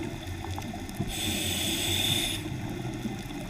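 Bubbles gurgle from a scuba diver's breathing underwater.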